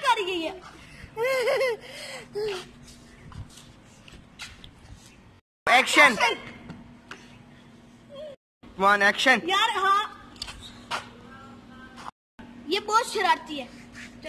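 A young girl laughs and talks close by.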